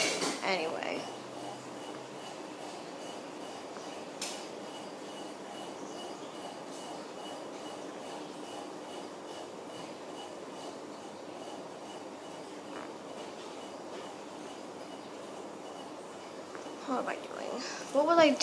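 A young girl talks over an online call, heard through a phone speaker.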